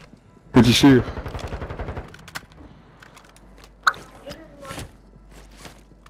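Footsteps patter quickly on pavement in a video game.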